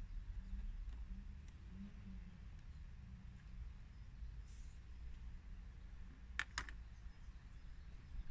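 A screwdriver clicks and scrapes against plastic.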